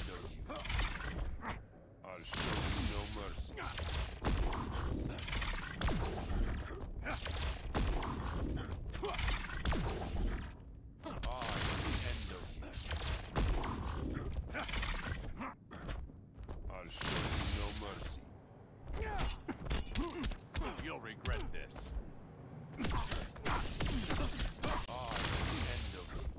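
Punches and kicks land with heavy, rapid thuds.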